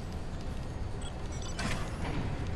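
Keypad buttons beep softly as they are pressed.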